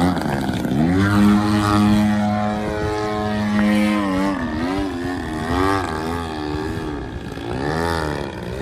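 A model plane's engine buzzes loudly overhead, its pitch rising and falling as it turns.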